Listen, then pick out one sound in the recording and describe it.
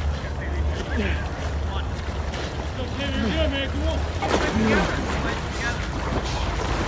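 Muddy water splashes as a man crawls through it.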